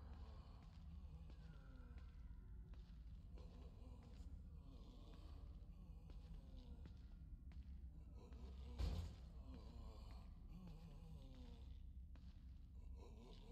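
Footsteps shuffle softly on a stone floor.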